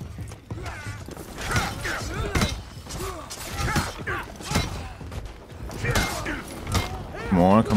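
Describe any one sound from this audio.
A crowd of soldiers shouts.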